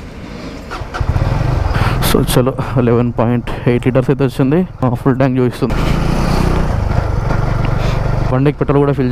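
A motorcycle engine roars as the bike rides away along the road.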